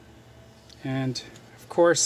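Pliers grip a metal fishing hook with a small click.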